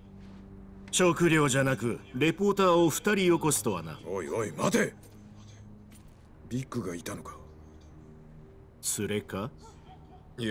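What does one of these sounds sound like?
A middle-aged man speaks in a low, gruff voice.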